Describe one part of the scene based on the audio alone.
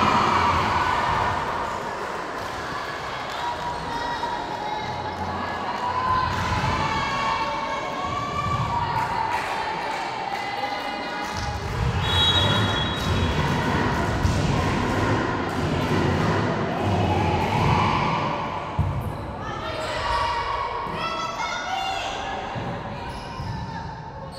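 Young women shout and call out in an echoing hall.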